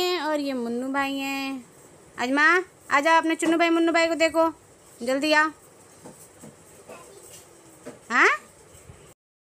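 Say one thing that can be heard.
A little girl sings and calls out in a high voice close by.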